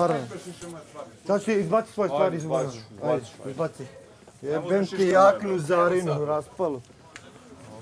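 A young man talks loudly with animation nearby.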